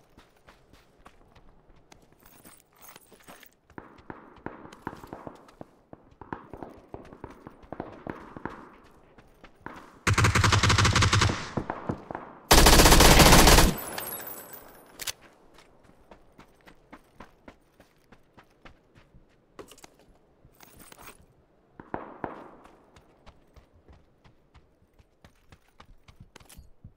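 Footsteps patter steadily across hard ground.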